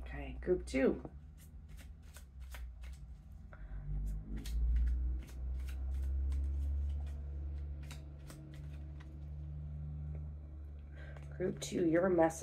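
Cards shuffle and slap softly in a woman's hands.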